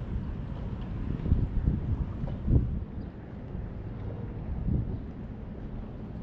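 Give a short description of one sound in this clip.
Wind rumbles and buffets outdoors over open water.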